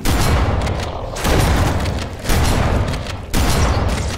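An explosion booms with a fiery blast.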